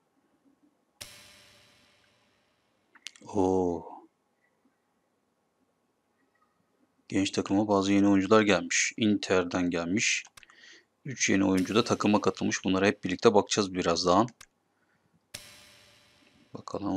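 A game menu makes a short swooshing chime as it opens.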